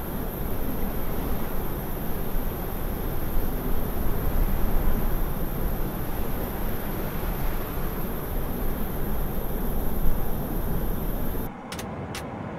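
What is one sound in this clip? A jet airliner's engines roar loudly as it flies low.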